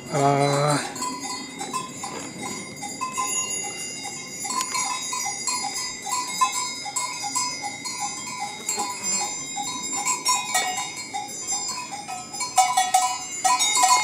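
Cowbells clink and tinkle steadily.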